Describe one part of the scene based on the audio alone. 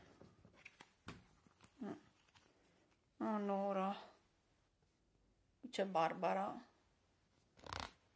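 Trading cards click softly as they are handled.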